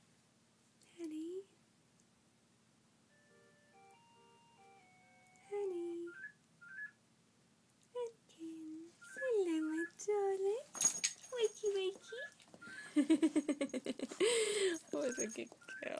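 A dog whimpers and yowls in its sleep.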